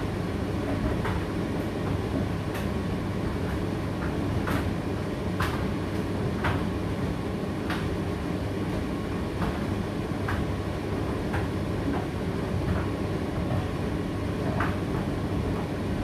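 A condenser tumble dryer hums and rumbles as its drum turns.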